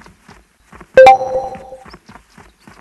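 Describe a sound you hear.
A notification chime rings out.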